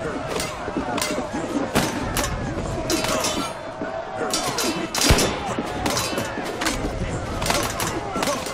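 Swords clash and clang repeatedly in a fight.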